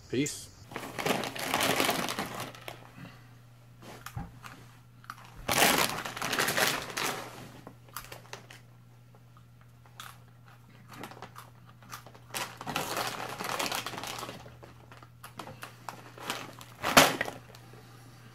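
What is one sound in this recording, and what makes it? A chip bag crinkles and rustles loudly.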